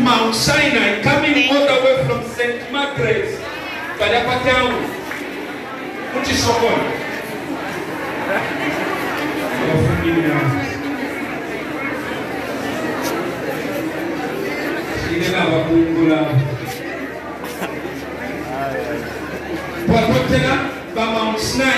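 A man's voice rises loudly over the crowd at times.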